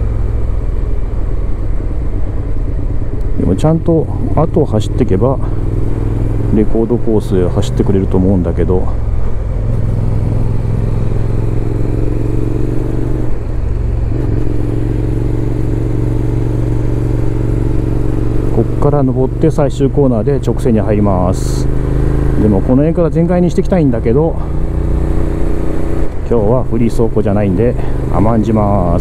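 A motorcycle engine hums steadily and rises and falls in pitch as it accelerates and slows.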